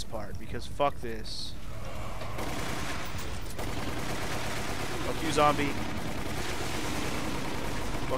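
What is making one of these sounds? Zombies groan and growl nearby.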